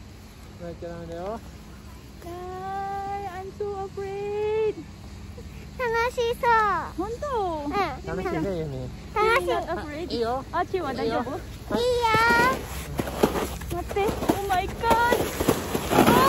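A woman talks close by in a lively voice.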